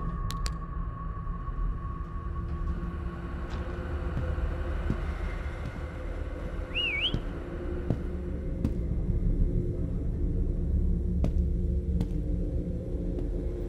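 Footsteps scuff slowly across a concrete floor.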